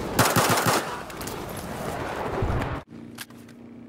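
Pistol shots crack loudly in quick succession.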